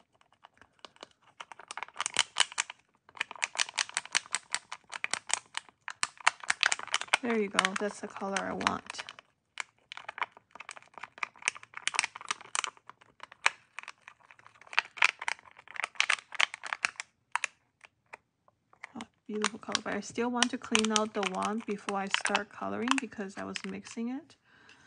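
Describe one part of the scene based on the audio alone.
A metal pick scrapes and taps against crinkly plastic in quick, close clicks.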